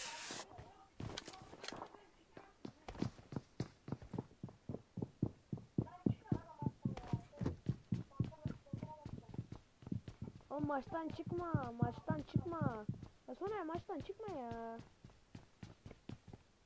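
Footsteps thud quickly and steadily on a hard floor.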